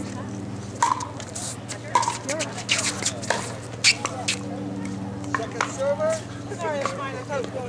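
A plastic ball bounces on a hard court.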